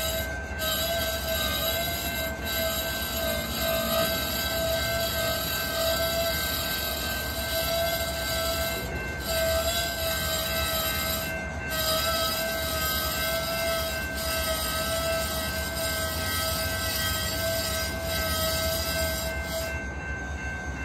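Train wheels squeal in a steady high whine.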